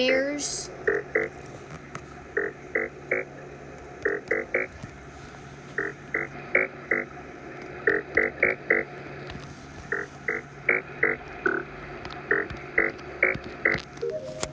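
Short electronic beeps sound one after another in quick patterns.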